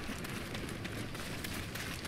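A fire crackles in a brazier.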